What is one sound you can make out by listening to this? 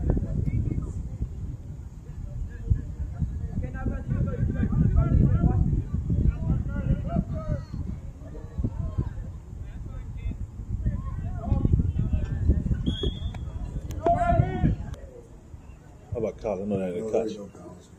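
Young men shout and call out across an open field at a distance.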